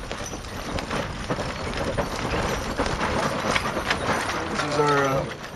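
Harness and chains rattle.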